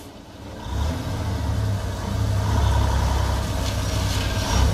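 A truck engine rumbles as the truck approaches.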